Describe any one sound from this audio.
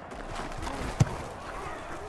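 A football is kicked with a sharp thump.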